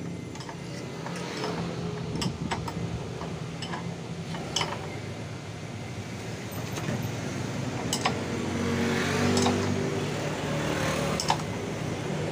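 Metal parts click and tap against a wheel.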